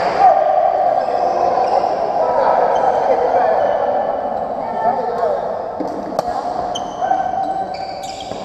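Sports shoes squeak on a wooden court floor.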